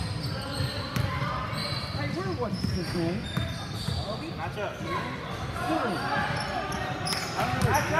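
Voices of players and spectators echo around a large hall.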